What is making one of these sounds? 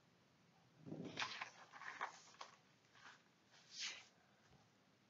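Paper rustles and crinkles as a hand smooths it flat.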